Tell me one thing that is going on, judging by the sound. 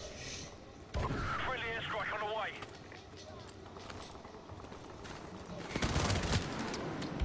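Gunfire rattles in short bursts.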